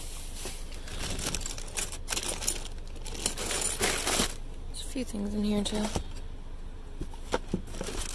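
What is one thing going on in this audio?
Plastic wrappers crinkle as a hand rummages through them.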